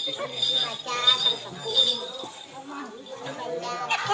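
A woman sings with animation close by.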